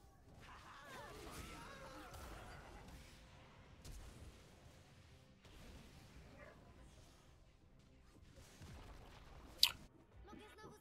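Game effects of spells and blows crackle and whoosh.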